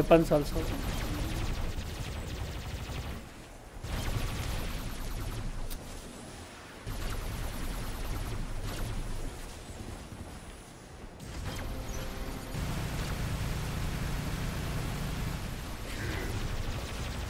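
A giant robot's guns fire in rapid bursts.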